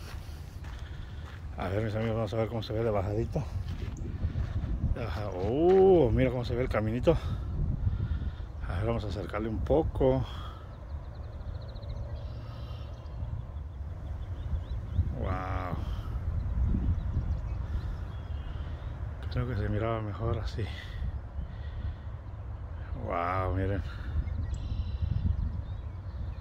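Wind blows and rumbles outdoors in the open.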